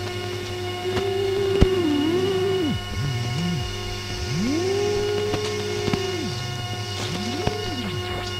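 A low electronic tone swoops up and down in pitch.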